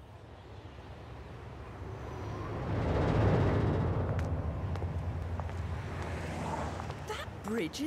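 A heavy truck engine rumbles loudly as it drives past, growing louder and then easing off.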